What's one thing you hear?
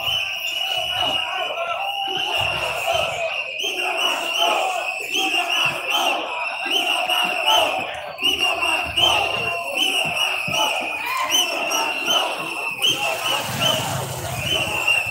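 A crowd of people shouts and clamours outdoors at a distance.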